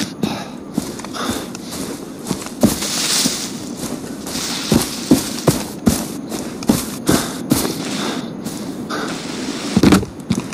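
Tall grass rustles against a moving body.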